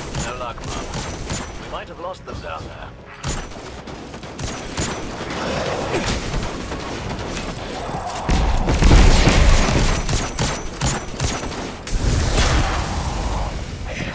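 Rapid gunfire bursts out with sharp cracks and booming blasts.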